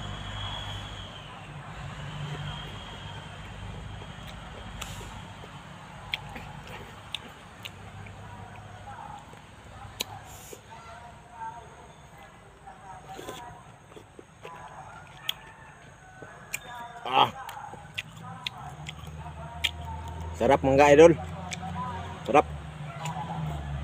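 A man chews and crunches firm fruit close to the microphone.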